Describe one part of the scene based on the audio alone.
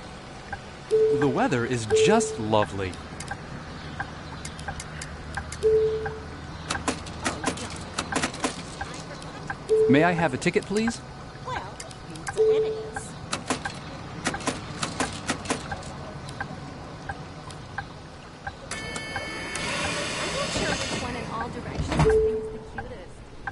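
A ticket machine beeps short beeps now and then.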